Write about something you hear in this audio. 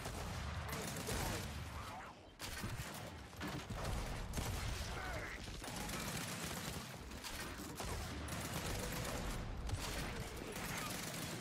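A chainsaw revs and grinds through flesh.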